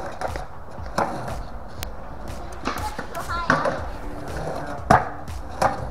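Skateboards clack against concrete.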